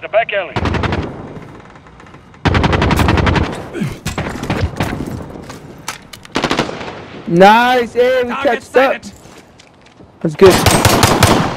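A rifle fires rapid bursts of shots at close range.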